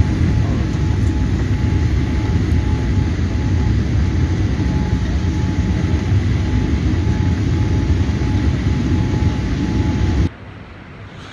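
Jet engines roar steadily inside an aircraft cabin.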